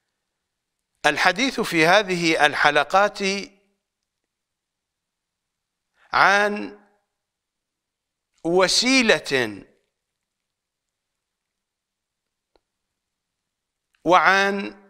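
A middle-aged man speaks calmly and earnestly into a close microphone, in bursts with long pauses.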